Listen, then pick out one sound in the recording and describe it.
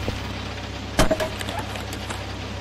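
A wooden chair clatters as it is knocked over.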